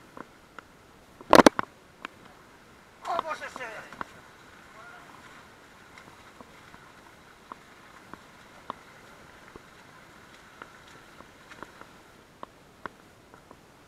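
Water rushes steadily over rocks nearby.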